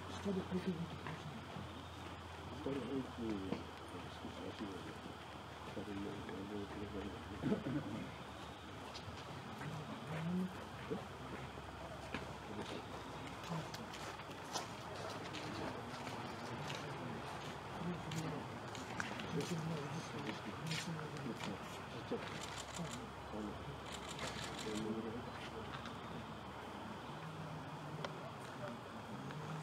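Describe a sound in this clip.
Elderly men talk quietly a short distance away, outdoors.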